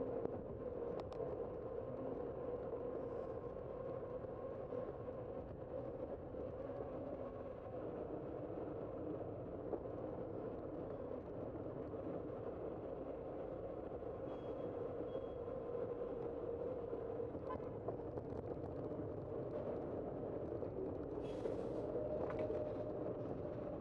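Wind rushes steadily past, outdoors.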